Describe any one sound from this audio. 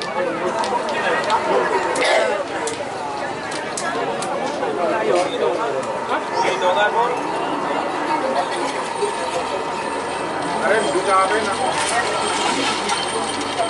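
A crowd of people shouts and cheers loudly outdoors.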